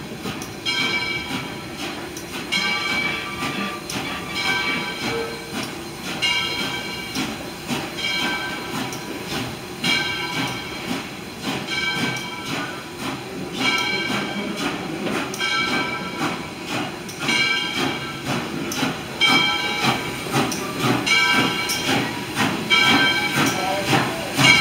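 A train rolls slowly along the track with a low rumble and clatter.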